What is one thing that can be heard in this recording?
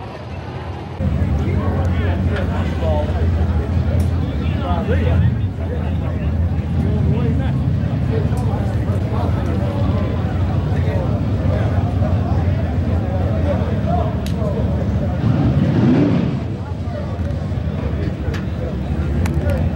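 A race car engine roars with a deep, steady rumble.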